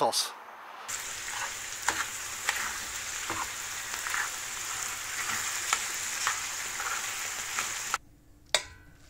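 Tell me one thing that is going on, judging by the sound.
Mushrooms sizzle loudly in a hot frying pan.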